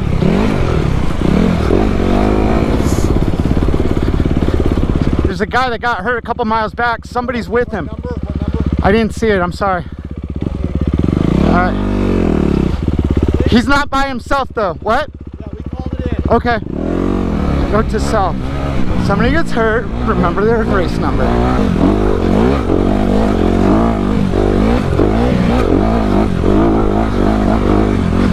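A dirt bike engine revs and idles loudly up close.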